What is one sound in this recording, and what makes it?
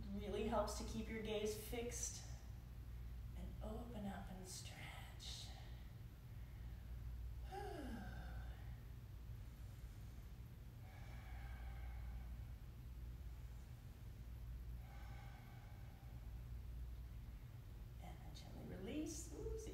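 A woman speaks calmly in short phrases.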